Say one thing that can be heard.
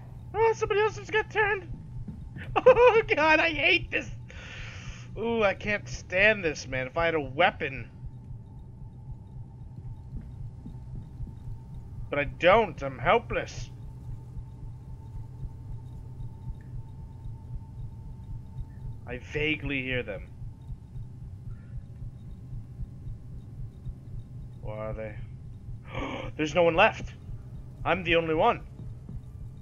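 A man talks calmly into a close microphone, in short bursts.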